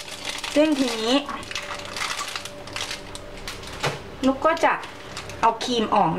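Cookies clack softly onto a wooden board.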